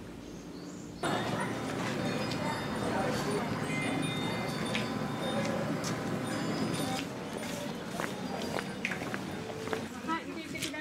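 People chatter in a busy street.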